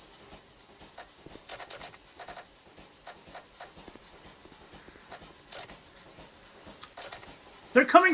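Soft game menu clicks tick now and then.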